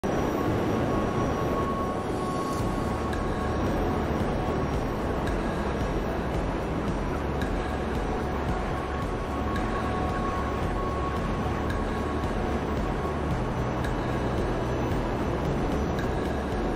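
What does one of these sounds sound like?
A jetpack's engines roar steadily.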